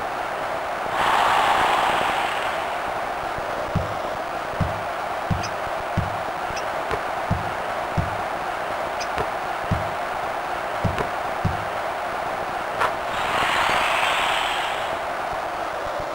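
A crowd cheers in short, loud bursts.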